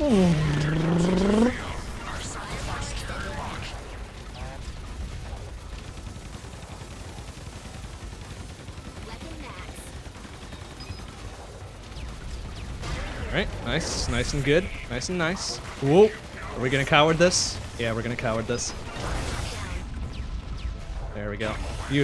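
Game explosions and shots crackle and boom.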